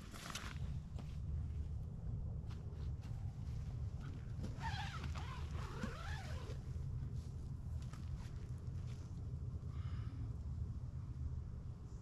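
Nylon tent fabric rustles and flaps as it is handled.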